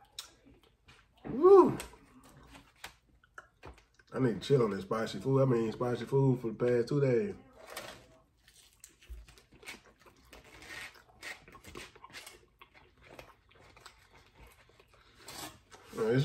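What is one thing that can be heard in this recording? Foil crinkles as a man handles food.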